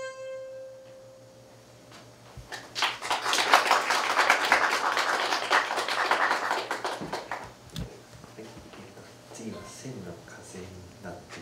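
A harmonica plays a held note, then a melody.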